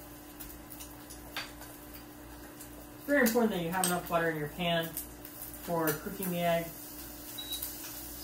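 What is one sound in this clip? An egg sizzles and crackles softly in a frying pan.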